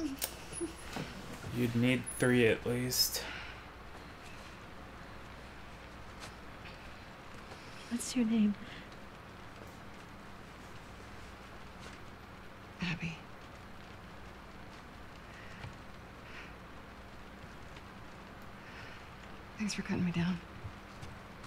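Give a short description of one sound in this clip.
A young woman speaks quietly and weakly, close by.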